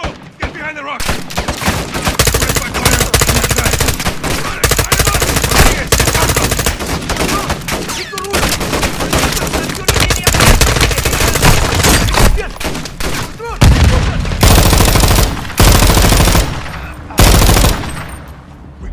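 A rifle fires in rapid bursts at close range.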